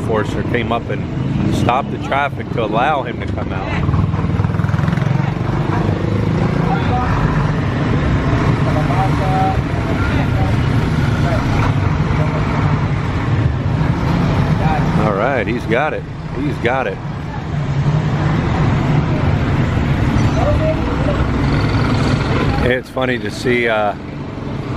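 Motorcycle engines buzz past.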